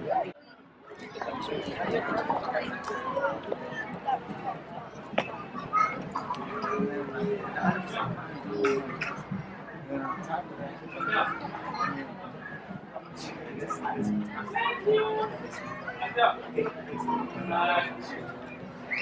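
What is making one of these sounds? Several adults chatter quietly in the background.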